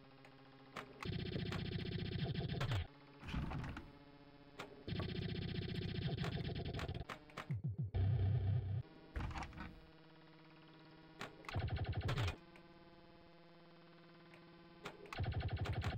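Electronic pinball music plays in loud bursts of bleeps and buzzes.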